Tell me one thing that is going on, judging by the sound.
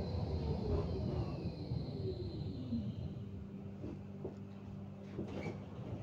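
A truck rumbles past outside.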